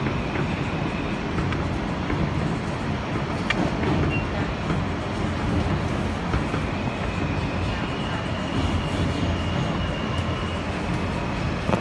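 Train wheels squeal against the rails.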